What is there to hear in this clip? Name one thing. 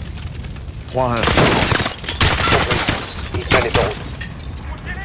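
Gunfire bursts out.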